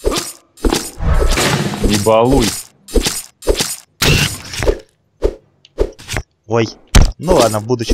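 Short game sound effects of strikes and hits ring out in quick bursts.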